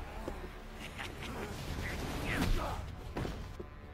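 A man falls hard onto the floor with a thud.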